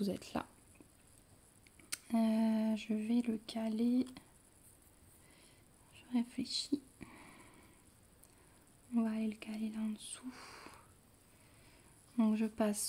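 Thread rasps softly as it is pulled through stiff fabric.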